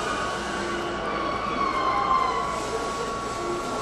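Train brakes squeal as the train comes to a stop.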